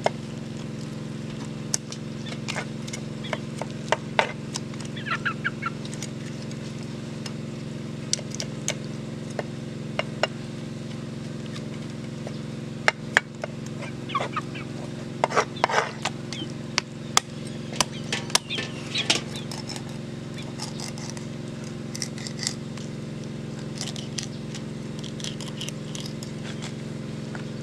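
A knife scrapes and chops through meat and bone on a board.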